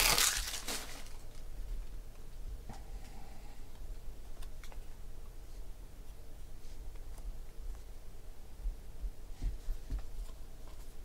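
Trading cards shuffle and flick against each other in hands.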